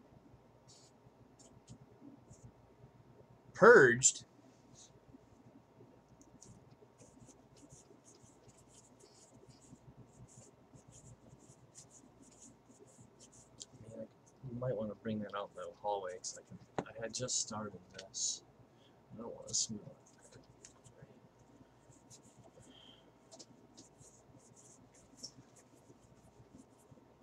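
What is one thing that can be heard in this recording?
Trading cards flick and rustle as a hand slides them off a stack.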